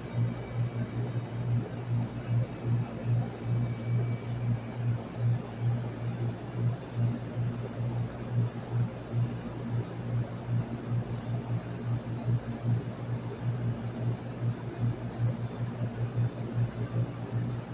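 A fan unit's motor hums with a low, steady, throbbing drone.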